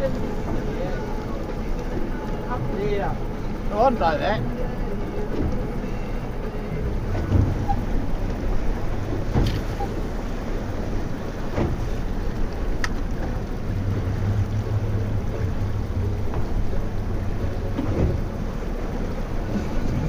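Water splashes and laps against a small boat's hull outdoors.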